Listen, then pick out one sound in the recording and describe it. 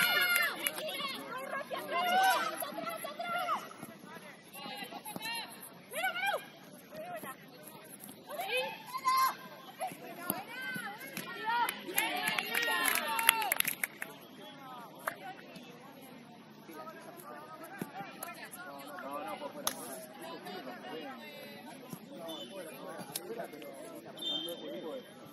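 Young women shout and call to each other across an open playing field.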